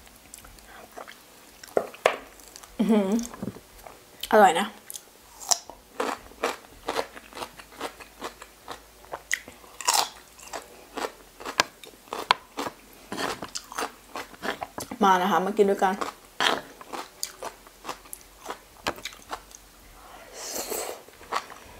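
A young woman chews crunchy food close to a microphone.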